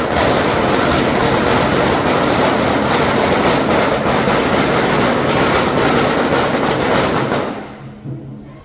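Firecrackers crackle in a rapid, loud, continuous burst.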